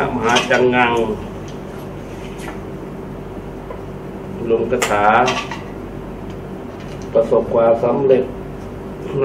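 A man speaks calmly nearby, in short bursts with pauses.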